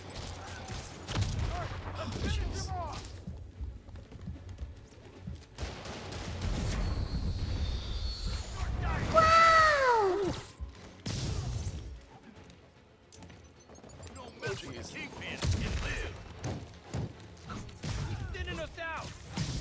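Punches and kicks land with heavy thuds during a brawl.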